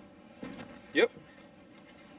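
A shoe steps onto a metal step with a thud.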